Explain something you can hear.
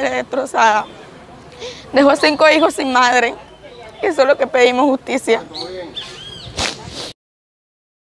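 A young woman speaks close to a microphone, emotionally and haltingly.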